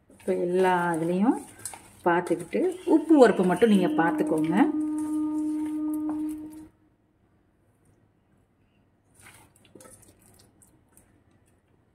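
Hands squelch and mix soft food in a metal bowl.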